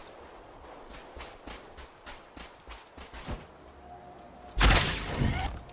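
Footsteps crunch over dry ground.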